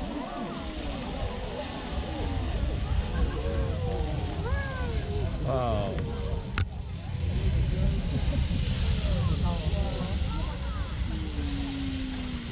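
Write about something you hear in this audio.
A geyser hisses and roars as water jets up.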